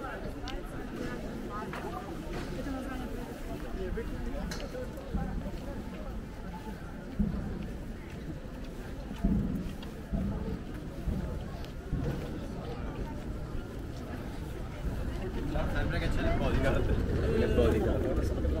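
Footsteps of many people shuffle on a paved path outdoors.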